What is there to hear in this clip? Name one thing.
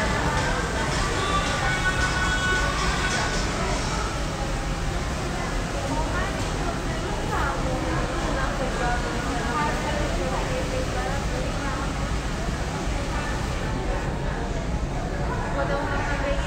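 Many voices murmur and chatter in the background of a busy room.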